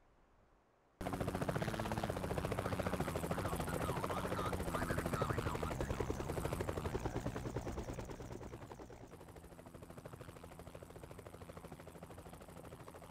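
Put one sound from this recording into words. A beam weapon fires with a loud crackling buzz.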